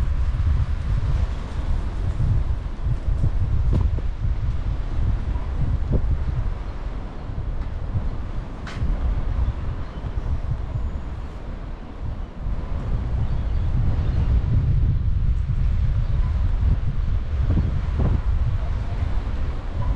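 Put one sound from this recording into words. Wind rumbles and buffets outdoors.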